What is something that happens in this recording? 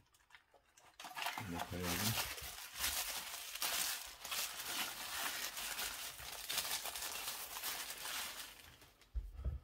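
Cloth rustles and crinkles as a record is wiped.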